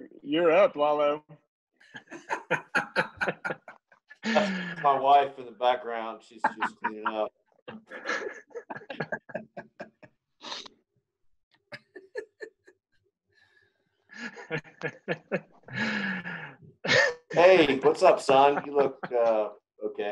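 A second man talks and laughs over an online call.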